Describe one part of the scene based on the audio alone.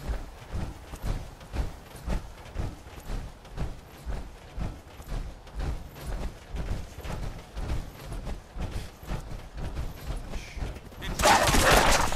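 Heavy metal footsteps thud in a steady rhythm.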